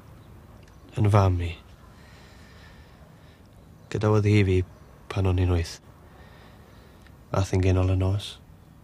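A man speaks quietly and sadly, close by.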